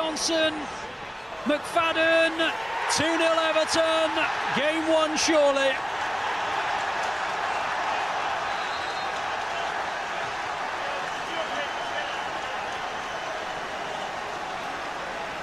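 A large crowd cheers and roars in a big open stadium.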